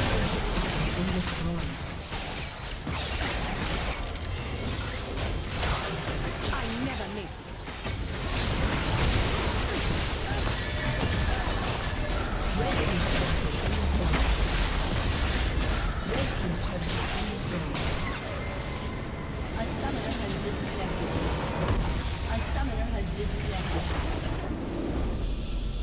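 Magic blasts and explosions crash during a video game battle.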